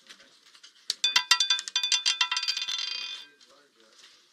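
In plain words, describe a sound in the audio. A ball rattles and clatters around a spinning roulette wheel.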